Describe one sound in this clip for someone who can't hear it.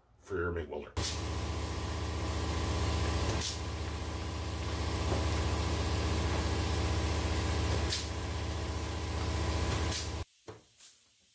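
An air-powered sander whirs steadily against metal.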